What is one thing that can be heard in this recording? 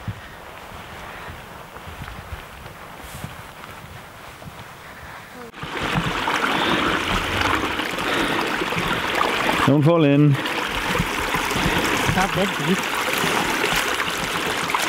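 Wind blows across open ground outdoors.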